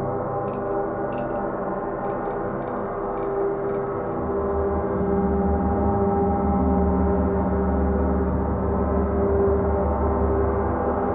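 Large gongs hum and shimmer with a deep, steady ringing drone.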